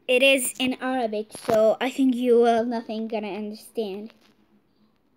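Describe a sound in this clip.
A girl talks with animation close to a phone microphone.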